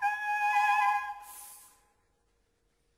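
A woman sings a long high note with vibrato, which rings out in a reverberant room.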